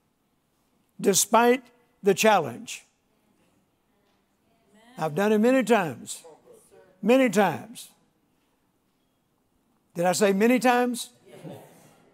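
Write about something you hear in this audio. An elderly man speaks slowly and deliberately through a microphone, with long pauses.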